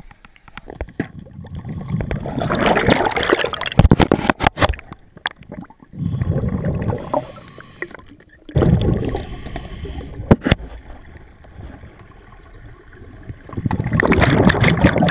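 Air bubbles rush and gurgle underwater in loud bursts.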